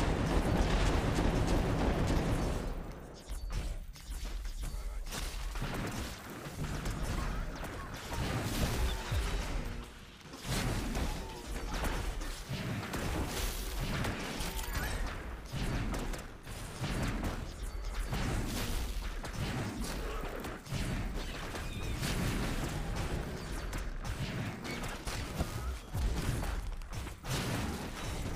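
Electric zaps and magic blasts crackle in a video game battle.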